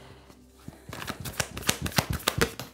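Cards shuffle and rustle with quick flicking clicks.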